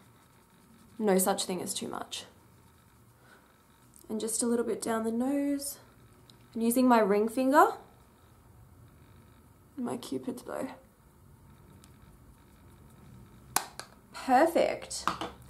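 A young woman talks calmly, in short phrases with pauses.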